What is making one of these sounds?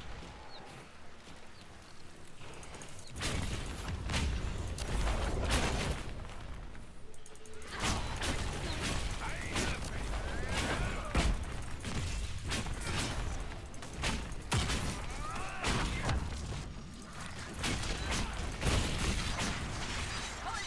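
Magic bolts crackle and burst in a fight.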